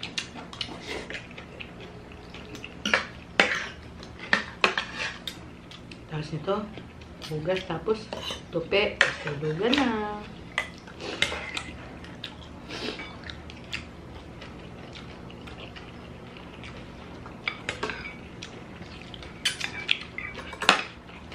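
A young man and a young woman chew and slurp food noisily.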